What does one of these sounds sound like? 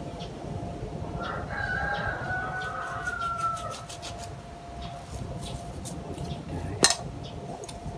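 Small scissors snip twigs with sharp clicks.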